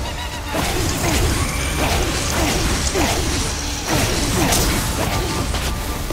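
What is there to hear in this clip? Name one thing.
Glass shatters in bursts.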